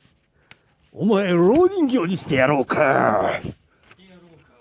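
A man talks loudly with animation, close by.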